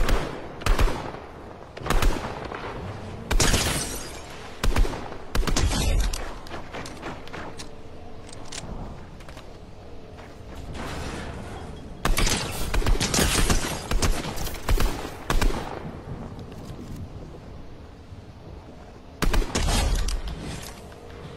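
Rifle shots crack out in sharp bursts.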